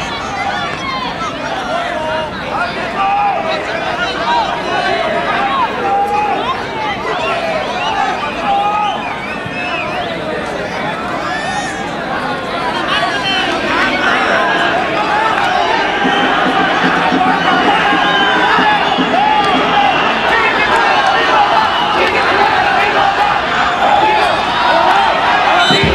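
A large crowd chatters and shouts outdoors, steady throughout.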